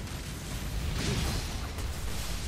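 A sharp blade slash strikes with a burst of impact.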